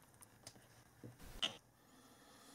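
A plug clicks into a socket.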